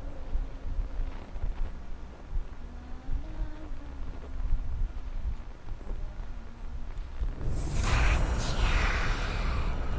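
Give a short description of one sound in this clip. Footsteps shuffle slowly on a hard floor.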